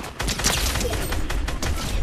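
Rapid gunshots ring out in bursts.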